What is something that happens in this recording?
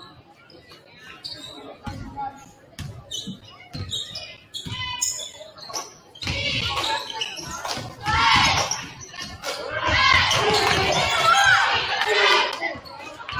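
Sneakers squeak and thump on a hardwood court in a large echoing gym.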